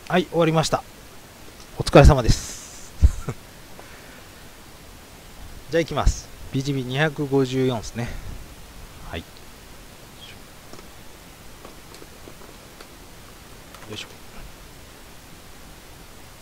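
Cards shuffle and slide against each other.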